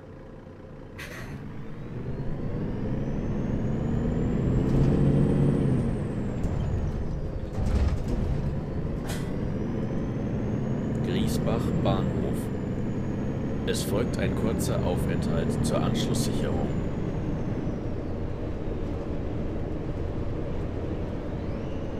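A bus engine revs up and drones as the bus drives along.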